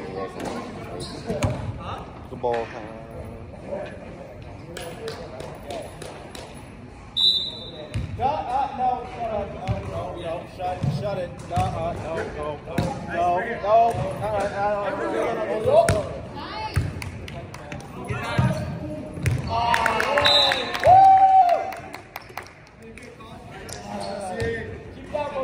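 A volleyball thuds off hands and arms.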